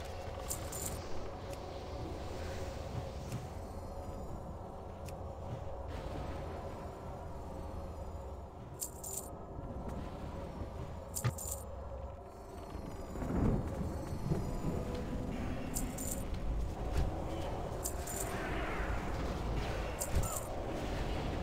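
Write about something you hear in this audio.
Spell effects crackle and boom in a battle.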